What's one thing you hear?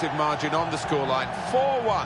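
A stadium crowd cheers and roars.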